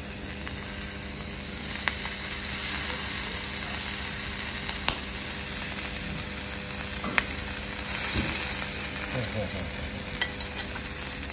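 Metal spatulas scrape and tap on a griddle.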